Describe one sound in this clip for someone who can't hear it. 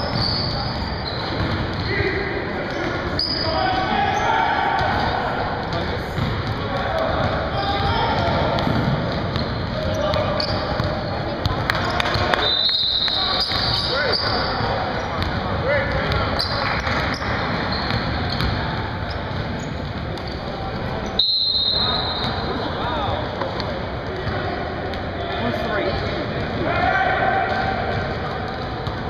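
Sneakers squeak on a hard court in a large echoing gym.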